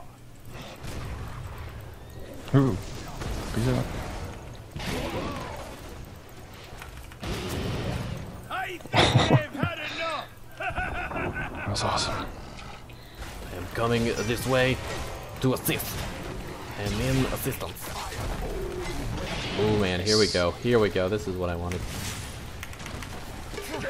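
Blasts and weapon hits crackle in a fight.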